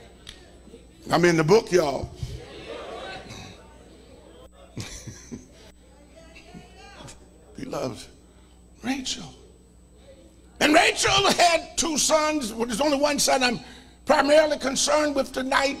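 A man preaches with animation through a microphone, in bursts between pauses.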